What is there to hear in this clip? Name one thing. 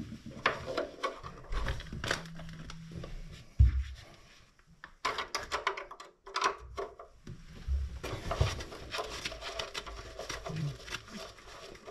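Small plastic parts click and rattle up close.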